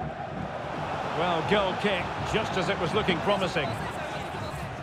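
A crowd of fans cheers loudly in a short burst.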